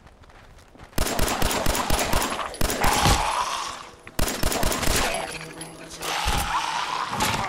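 Rapid gunshots fire in loud bursts.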